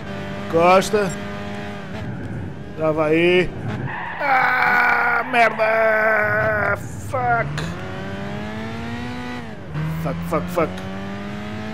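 A racing car engine revs high and drops sharply as gears shift.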